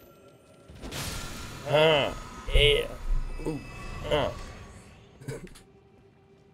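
A magical shimmer chimes and fades.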